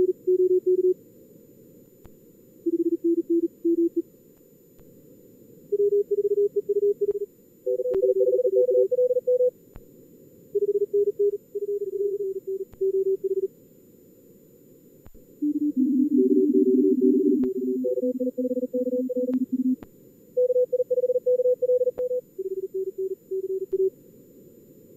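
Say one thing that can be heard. Morse code beeps in quick bursts at several pitches.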